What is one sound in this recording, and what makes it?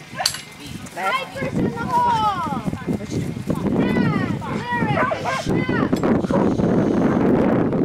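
A woman calls to a dog outdoors with animation.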